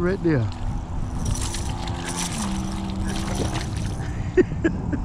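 A hooked fish splashes and thrashes at the water's surface.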